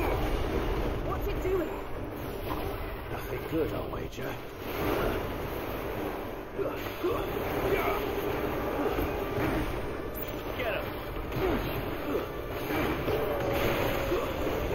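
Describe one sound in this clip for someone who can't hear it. Fiery explosions burst and crackle.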